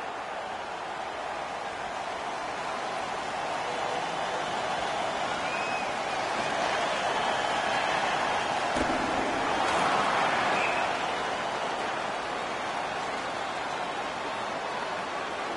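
A large crowd roars steadily in an echoing arena, swelling louder for a moment.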